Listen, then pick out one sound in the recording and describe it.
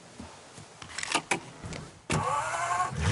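A car door opens and slams shut.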